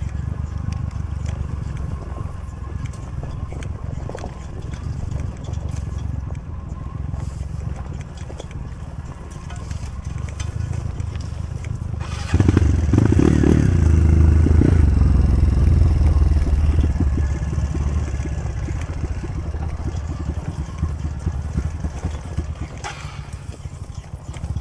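Tyres crunch over a rocky dirt trail.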